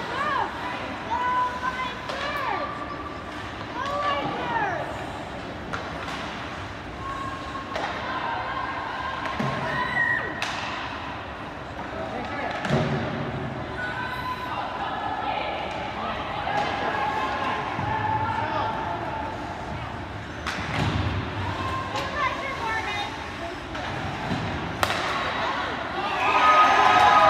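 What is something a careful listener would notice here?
Skate blades scrape and hiss across the ice in a large echoing rink.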